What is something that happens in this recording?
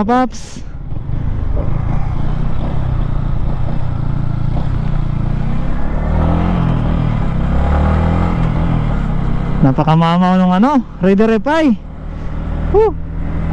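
A motorcycle engine revs up and down sharply at speed.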